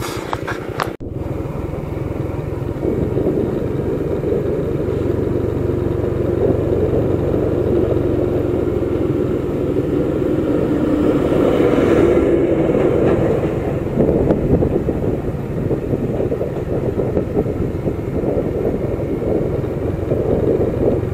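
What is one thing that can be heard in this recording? A motorcycle engine drones steadily as the bike rides along.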